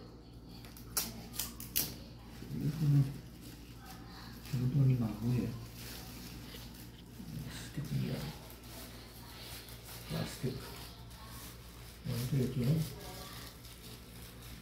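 A plastic sheet crinkles under hands.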